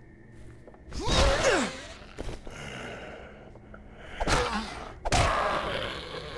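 A bat strikes a body with heavy thuds.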